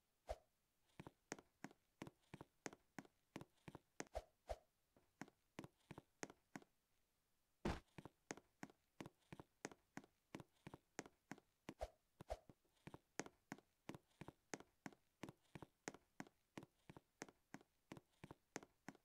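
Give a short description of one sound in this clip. Footsteps tap in a quick, even rhythm.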